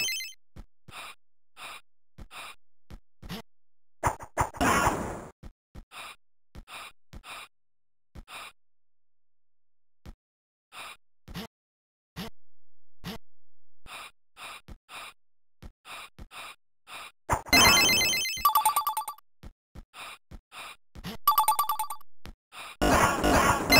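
Short electronic game bleeps sound in a steady, bouncy beat.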